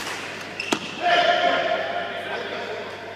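Sneakers squeak on a hard sports floor.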